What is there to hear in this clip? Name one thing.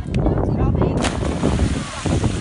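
A body splashes loudly into the sea.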